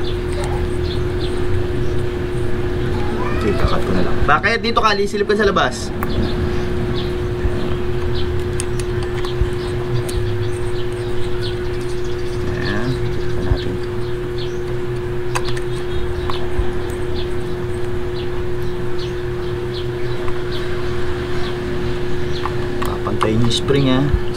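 A metal socket wrench clicks and ratchets against bolts.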